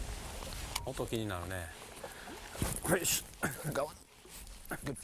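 A man talks outdoors in wind.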